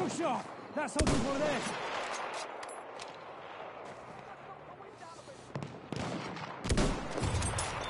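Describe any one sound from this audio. A rifle fires loud single shots that echo across open ground.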